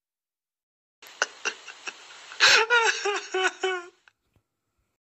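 A short cheerful game jingle plays with bright chiming notes.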